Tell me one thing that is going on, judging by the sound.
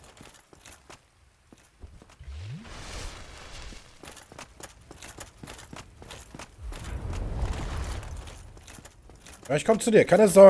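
Footsteps clatter quickly on stone.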